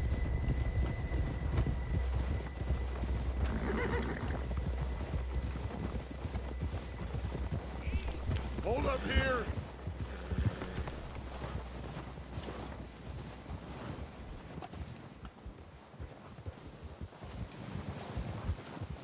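Horses trudge through deep snow with soft crunching steps.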